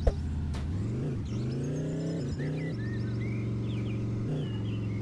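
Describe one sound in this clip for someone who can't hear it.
A motorbike engine revs up and drones steadily.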